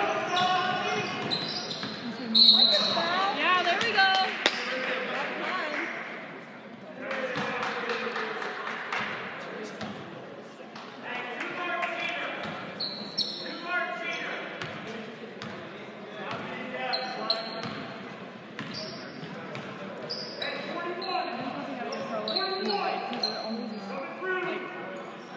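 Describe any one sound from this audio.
A crowd in the stands cheers and chatters, echoing in a large hall.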